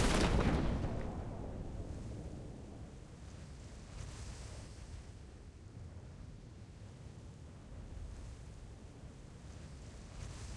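Wind flutters softly through an open parachute canopy.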